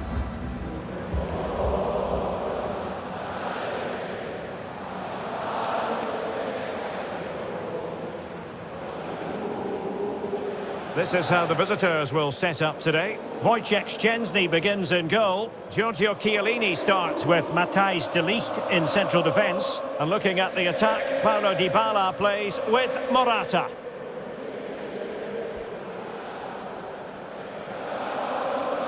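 A large stadium crowd roars and murmurs steadily.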